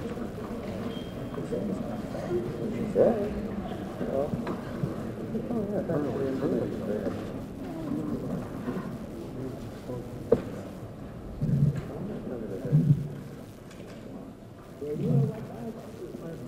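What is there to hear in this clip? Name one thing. Several men and women talk quietly in the background of a large room.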